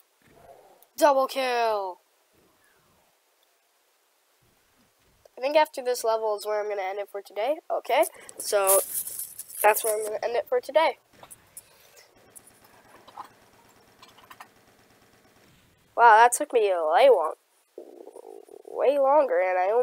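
A boy talks with animation close to a microphone.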